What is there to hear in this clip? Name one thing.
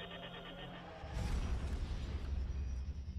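A sudden whoosh bursts out as a spaceship leaps forward.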